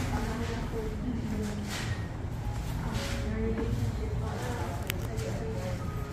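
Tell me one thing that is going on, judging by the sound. Women chat quietly at tables nearby.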